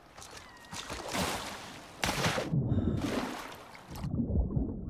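Water sloshes and splashes as someone wades through a lake.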